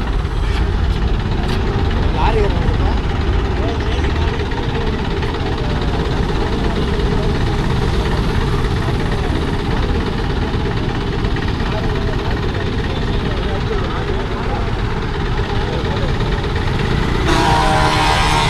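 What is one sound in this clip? A truck engine idles close by with a low rumble.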